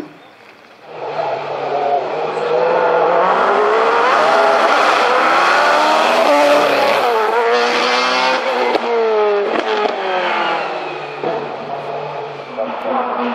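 A single-seater race car engine screams loudly as it accelerates past.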